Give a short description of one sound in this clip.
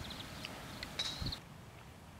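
A golf club strikes a golf ball.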